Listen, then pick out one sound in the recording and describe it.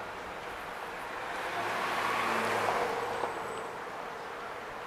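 A car drives past close by on a city street.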